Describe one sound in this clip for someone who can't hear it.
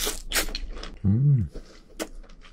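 A young man hums briefly with his mouth full.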